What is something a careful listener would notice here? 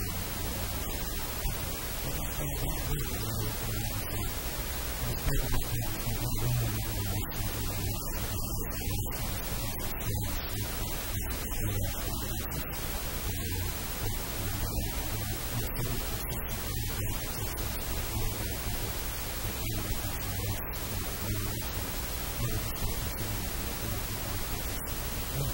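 A middle-aged man speaks calmly and quietly close to a microphone.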